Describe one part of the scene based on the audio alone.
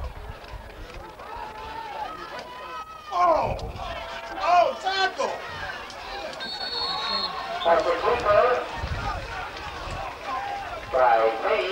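Spectators cheer and shout from the sidelines outdoors.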